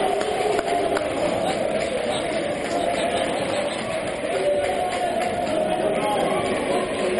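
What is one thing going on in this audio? A crowd cheers and chants loudly in an echoing indoor hall.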